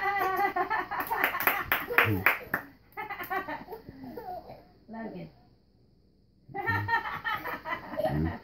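A toddler claps small hands.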